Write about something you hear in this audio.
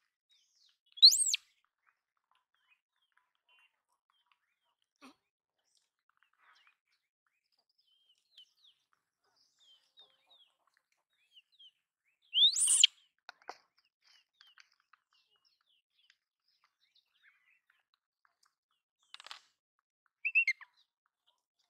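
A young monkey squeaks shrilly a few times.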